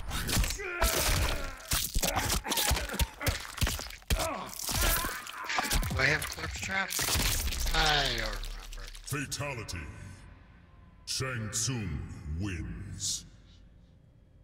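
Molten lava hisses and crackles.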